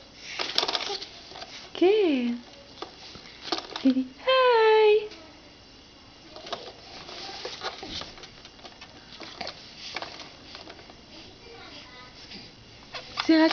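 A baby's hands tap on a plastic toy tray.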